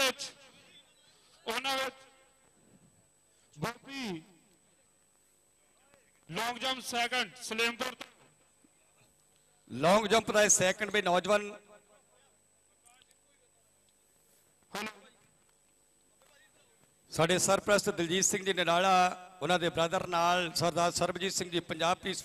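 A man announces loudly over a loudspeaker in short bursts with pauses.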